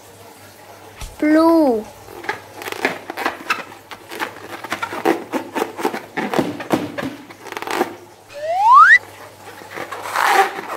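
A water-filled balloon squelches and squeaks as it is squeezed.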